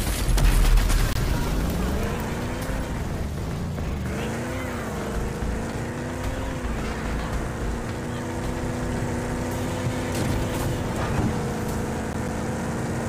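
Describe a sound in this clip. Tyres rumble and crunch over loose dirt.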